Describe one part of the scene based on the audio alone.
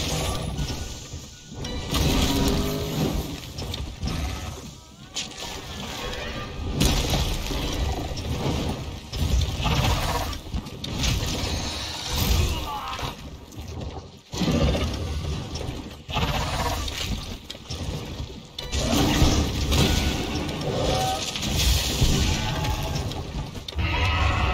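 Heavy weapon blows crash and thud against a large creature.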